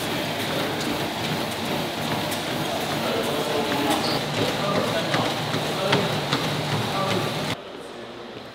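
Feet thud steadily on a running treadmill.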